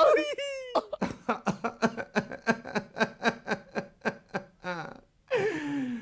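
A man sobs loudly in quick, gasping bursts, close by.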